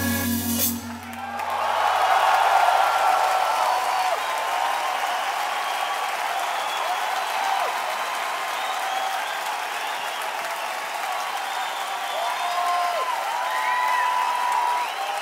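A large crowd cheers and whistles loudly in a big hall.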